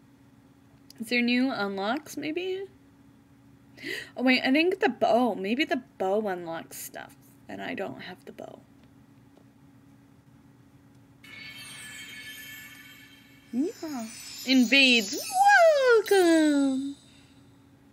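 A young woman talks and squeals with animation, close to a microphone.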